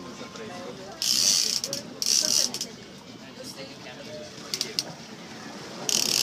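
A fish splashes hard in the water beside a boat.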